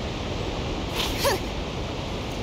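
A blade swishes sharply as it is drawn.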